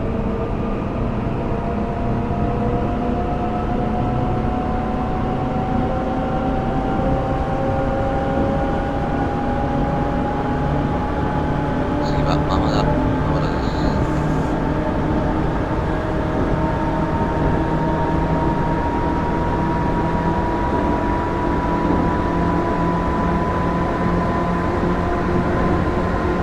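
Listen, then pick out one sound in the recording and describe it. An electric train motor hums steadily, slowly rising in pitch as the train speeds up.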